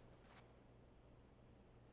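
Shoes scuff and tap on a hard floor.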